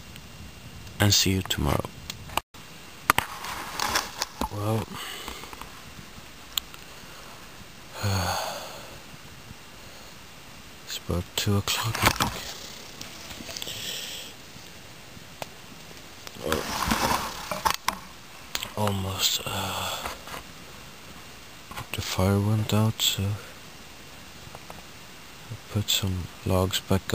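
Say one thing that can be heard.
A man speaks quietly and close by, in bursts with pauses.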